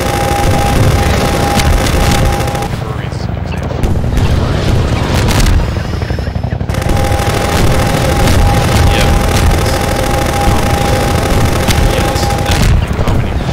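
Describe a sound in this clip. Explosions boom and rumble repeatedly.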